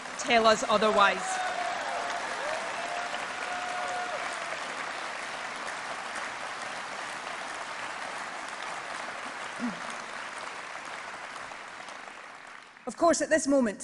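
A large crowd applauds and cheers in a big echoing hall.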